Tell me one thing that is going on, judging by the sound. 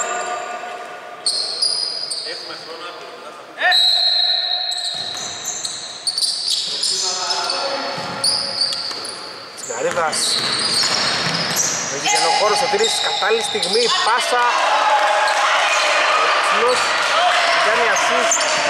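Sneakers squeak sharply on a hardwood court in an echoing hall.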